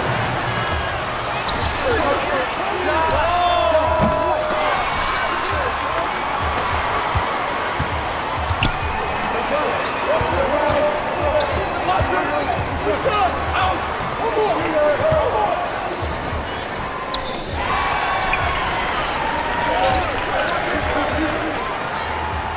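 Sneakers squeak sharply on a wooden court.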